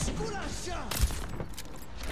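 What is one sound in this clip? A rifle fires a sharp shot.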